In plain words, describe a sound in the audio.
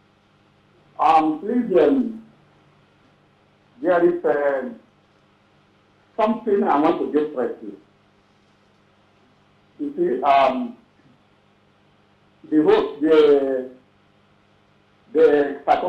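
A man speaks in short bursts with pauses, heard over a phone line.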